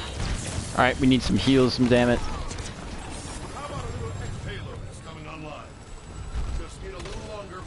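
Guns fire and blasts boom in a fast-paced game battle.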